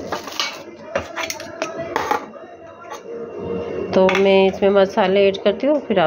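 Metal containers clink together.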